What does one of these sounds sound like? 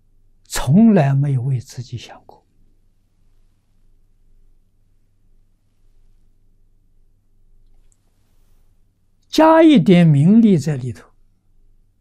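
An elderly man speaks calmly into a close microphone, pausing between phrases.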